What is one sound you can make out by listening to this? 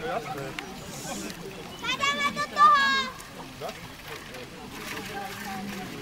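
Water splashes as people wade in shallow water.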